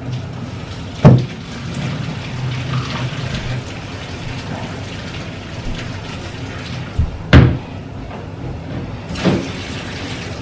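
A pan knocks against a metal sink.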